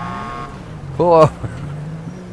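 A police siren gives a short, sharp yelp.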